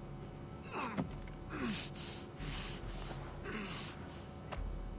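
A young woman groans and gasps in pain.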